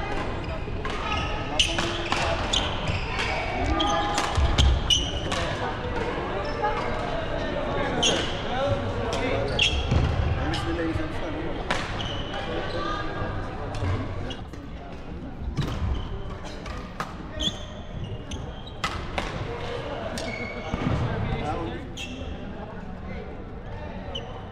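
Shuttlecocks are struck with sharp pops of badminton rackets.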